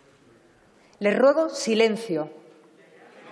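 A woman speaks briefly and firmly through a microphone in a large echoing hall.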